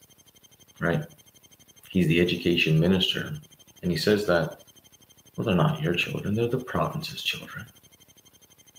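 A young man speaks casually and close up.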